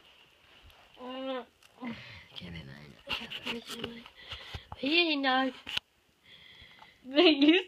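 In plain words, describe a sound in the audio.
A dog whines playfully up close.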